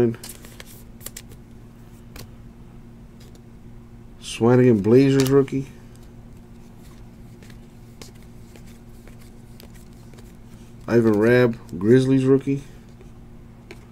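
Cardboard trading cards rustle and slide against each other in someone's hands.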